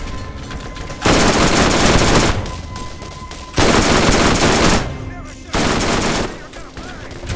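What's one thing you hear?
Rapid bursts of automatic gunfire ring out.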